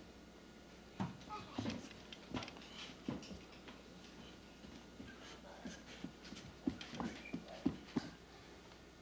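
A child's bare feet thump on a wooden floor.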